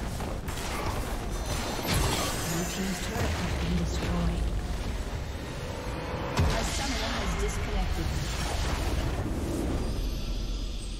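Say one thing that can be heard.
Magic blasts, clashing weapons and explosions ring out in a busy fight.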